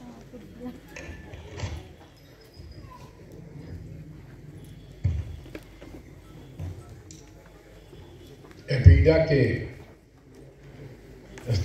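An older man speaks calmly into a microphone in a large echoing hall.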